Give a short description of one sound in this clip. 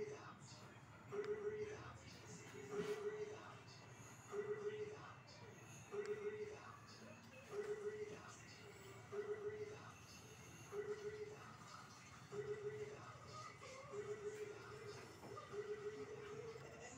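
A short, bright tune repeats over and over from a television in the room.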